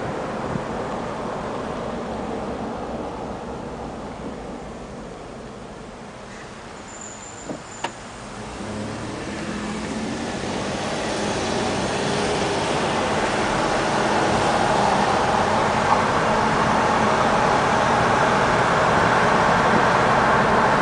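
Tyres hum on the road, heard from inside a car.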